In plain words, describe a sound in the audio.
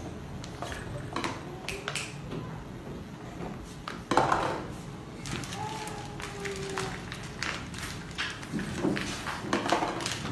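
Paper cups tap and scrape on a board.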